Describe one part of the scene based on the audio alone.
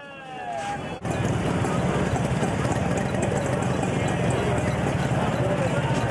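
A crowd of people chatters and bustles nearby outdoors.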